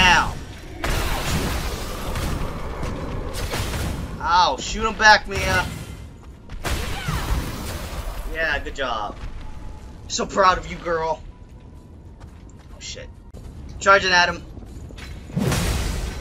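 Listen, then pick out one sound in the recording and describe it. A greatsword swings and strikes.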